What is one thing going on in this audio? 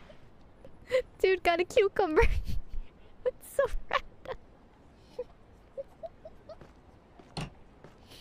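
A young woman speaks excitedly and squeals into a close microphone.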